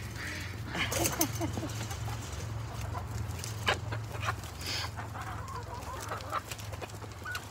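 Chickens cluck and chirp close by.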